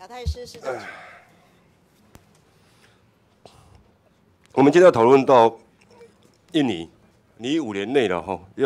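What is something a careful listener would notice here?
A young man speaks into a microphone in short, measured phrases.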